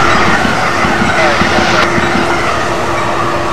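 A train rumbles past and fades away.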